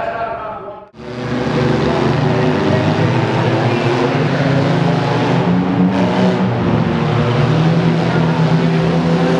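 Monster truck engines roar loudly.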